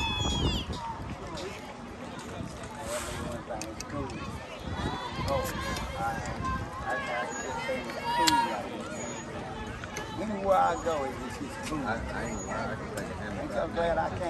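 Young women call out and chatter across an open outdoor field.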